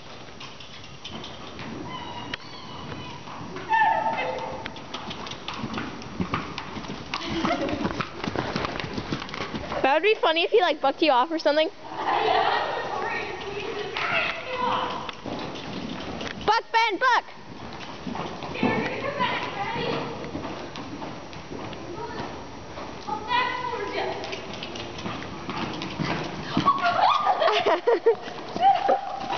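A horse's hooves thud softly on dirt as it trots and canters.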